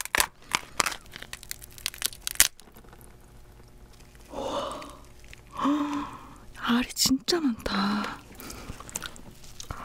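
Crab shell cracks and crunches close up.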